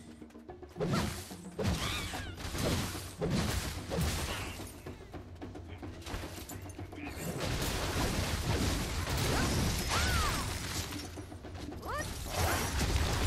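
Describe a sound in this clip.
Weapons strike and slash in a fight.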